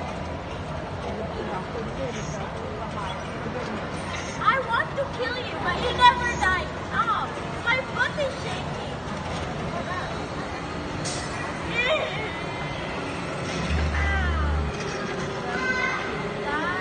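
Motion chairs whir and hum as they tilt.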